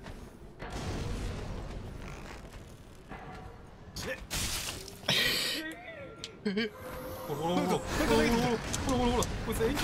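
A fiery blast bursts with a deep roar.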